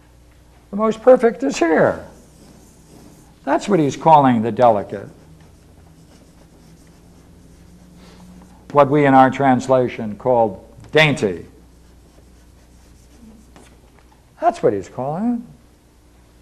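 An elderly man speaks slowly in short phrases with long pauses.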